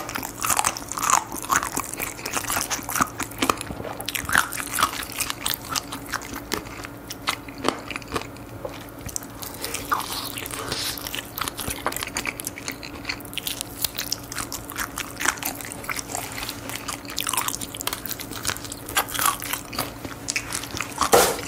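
A man bites into and chews crispy fried chicken close to a microphone, with loud crunching.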